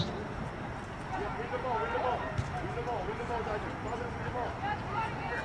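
Young women call out across an open field in the distance.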